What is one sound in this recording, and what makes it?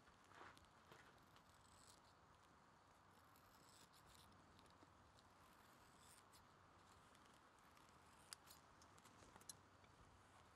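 Scissors snip softly at a feather.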